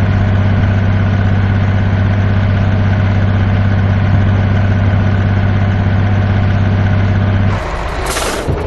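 A truck engine drones steadily at a constant speed.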